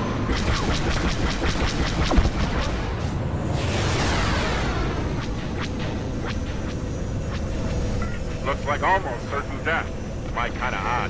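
Rapid laser cannons fire in quick bursts.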